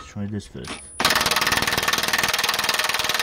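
An impact wrench rattles loudly and steadily.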